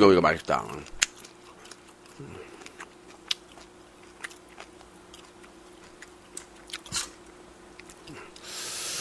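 A fork clicks and scrapes against a food container.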